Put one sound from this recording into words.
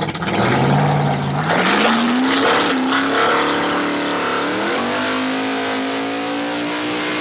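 A race car engine roars loudly, revving up and down.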